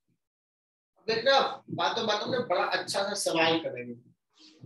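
A young man speaks clearly and with animation, close by.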